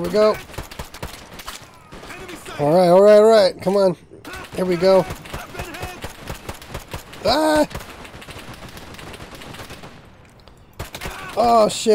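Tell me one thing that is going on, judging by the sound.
Gunshots crackle in rapid bursts.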